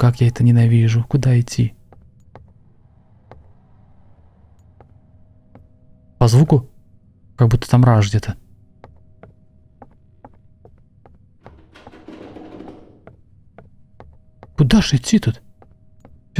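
A man talks close to a microphone in short animated bursts.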